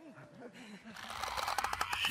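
A monster shrieks and clicks close by.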